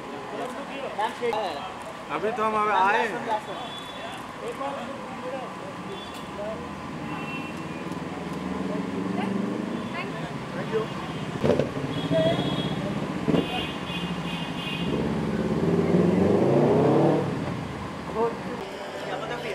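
Men call out and chatter nearby.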